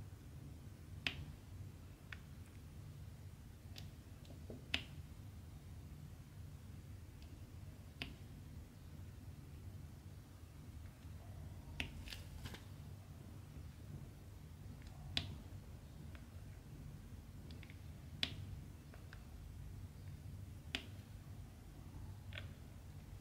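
A pen tool taps softly, picking up and placing tiny plastic beads.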